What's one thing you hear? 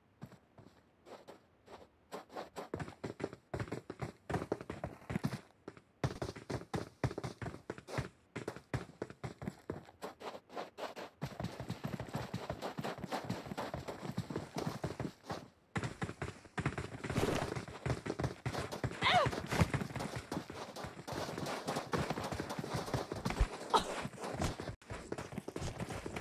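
Footsteps patter quickly across dry, sandy ground.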